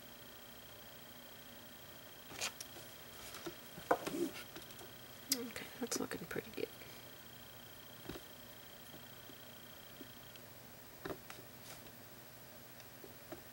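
A paintbrush brushes softly across a board.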